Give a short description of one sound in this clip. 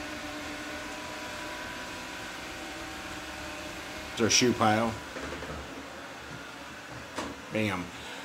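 A robot vacuum hums and whirs steadily.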